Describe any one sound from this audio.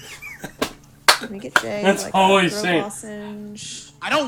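A second young man laughs loudly close to a microphone.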